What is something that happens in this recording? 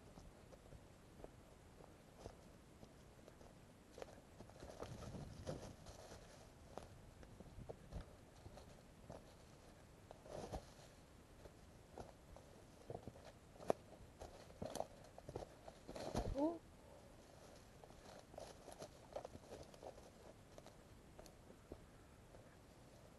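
Footsteps crunch on dry leaf litter.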